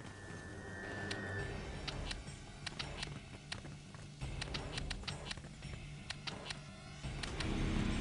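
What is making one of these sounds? Mechanical dials click as they turn.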